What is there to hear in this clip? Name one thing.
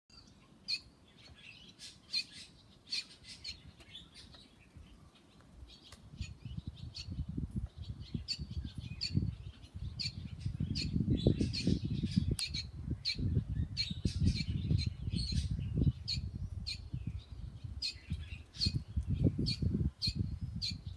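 A small bird chirps repeatedly nearby.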